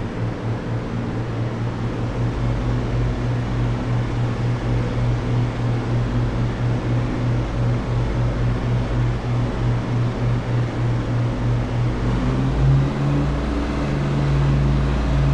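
An aircraft engine drones loudly from close by, with a fast, rhythmic throb.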